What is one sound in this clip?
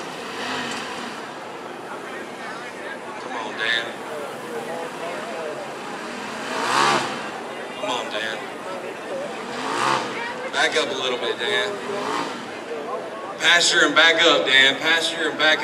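An off-road engine revs hard in loud bursts.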